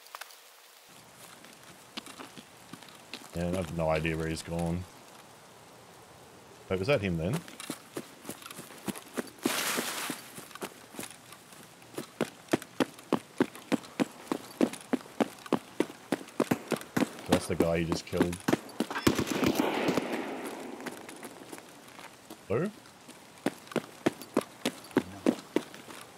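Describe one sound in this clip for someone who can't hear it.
Footsteps crunch steadily over gravel and concrete.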